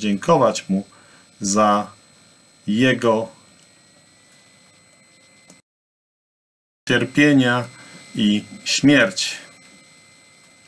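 A middle-aged man speaks calmly, in short phrases, through an online call.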